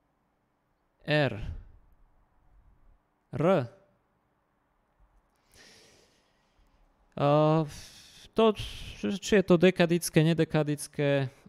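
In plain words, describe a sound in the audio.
A man speaks into a close microphone, calmly explaining, with pauses.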